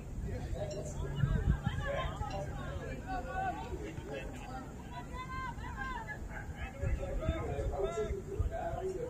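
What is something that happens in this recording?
Players shout and call to each other across an open field outdoors.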